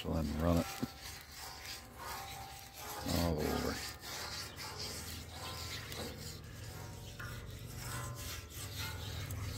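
A scrubbing pad scrapes back and forth across a wet metal griddle.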